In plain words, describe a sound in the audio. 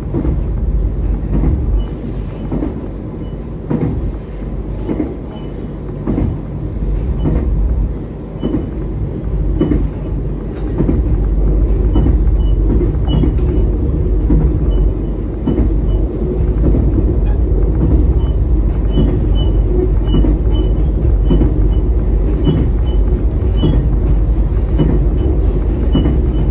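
Train wheels click and clack over rail joints.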